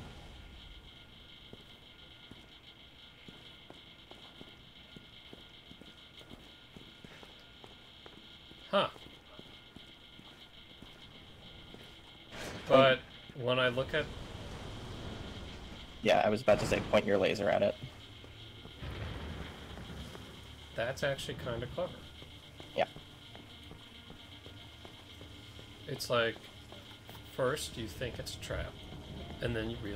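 Footsteps tread slowly on a stone floor.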